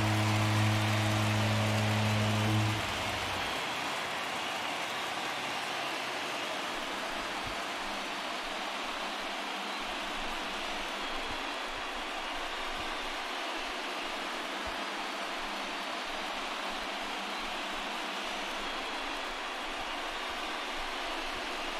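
A large stadium crowd cheers loudly and steadily.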